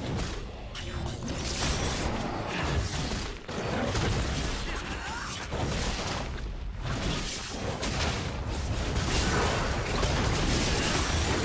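Video game spells crackle and boom in a fight.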